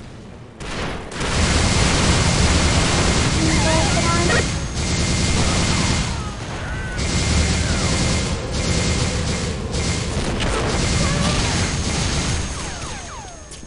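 A heavy gun fires in fast bursts.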